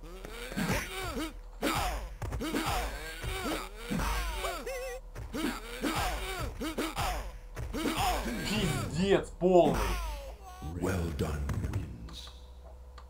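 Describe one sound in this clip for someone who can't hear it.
Punches and kicks land with heavy thuds in a fighting game.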